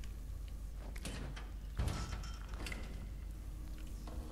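A metal door handle rattles as a door is tried.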